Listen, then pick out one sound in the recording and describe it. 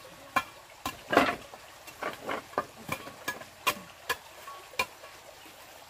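Wooden boards knock and clatter as they are stacked.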